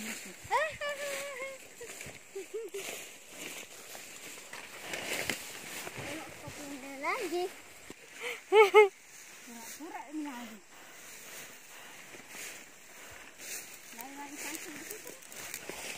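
A woman calls out and talks nearby.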